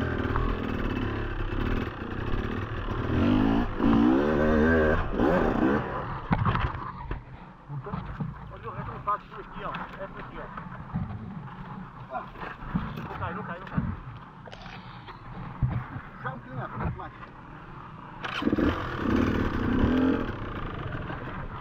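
A dirt bike engine revs hard in short bursts.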